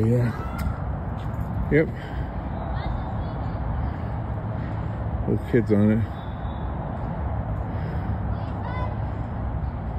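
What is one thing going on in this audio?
Children call out faintly in the distance.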